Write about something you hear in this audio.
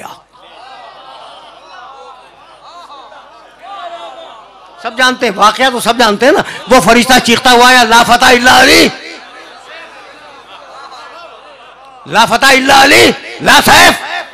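A man speaks passionately through a loudspeaker, his voice rising to loud, fervent calls.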